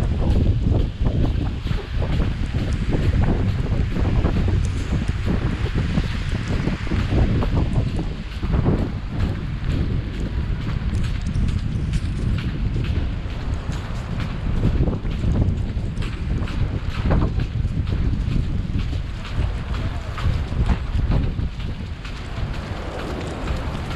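Footsteps tread steadily on a wet, slushy pavement.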